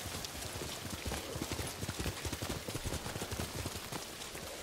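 A horse's hooves thud on the ground.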